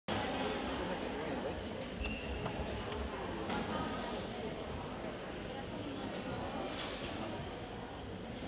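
A crowd murmurs quietly in a large echoing hall.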